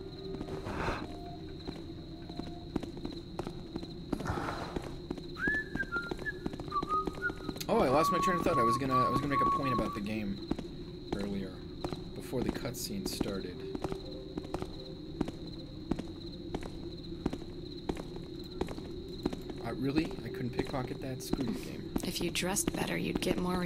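Footsteps tread slowly on a hard stone floor.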